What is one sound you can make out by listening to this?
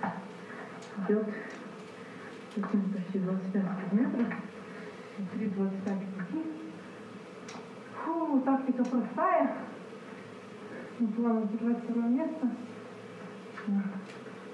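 A man speaks calmly, heard through a loudspeaker.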